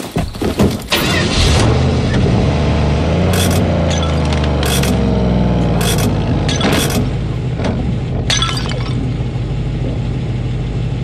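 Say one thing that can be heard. A truck engine starts and idles with a low, steady rumble.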